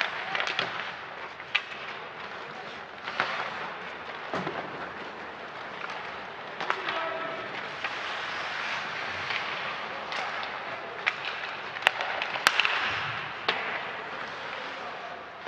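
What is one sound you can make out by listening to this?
Skates scrape and hiss on the ice.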